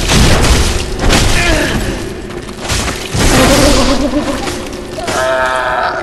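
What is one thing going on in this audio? Heavy weapons swing and clash in a fight.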